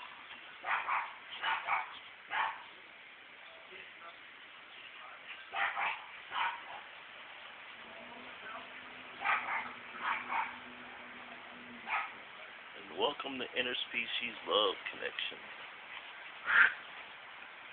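A small dog barks in short bursts.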